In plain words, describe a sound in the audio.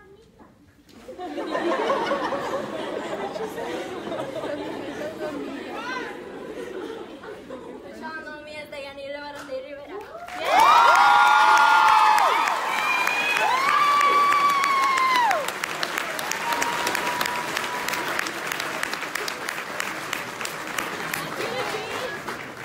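A crowd of young women chatters and calls out in a large echoing hall.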